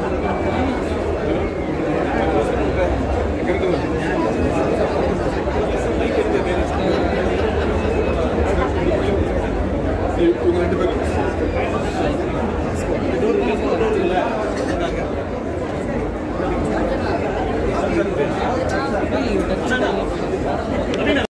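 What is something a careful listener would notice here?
A crowd murmurs and chatters all around in a busy room.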